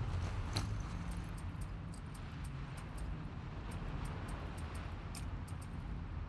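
Soft menu clicks tick quickly, one after another.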